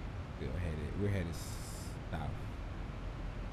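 A man speaks briefly and casually into a headset microphone.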